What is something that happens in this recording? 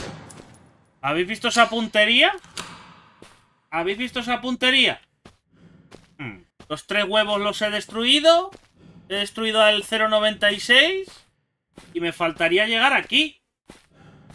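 A young man talks animatedly into a close microphone.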